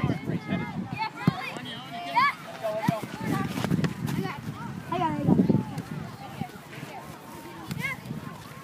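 Children shout and call out nearby outdoors.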